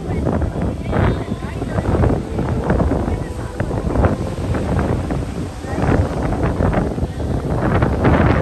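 Water churns and splashes against a ship's hull.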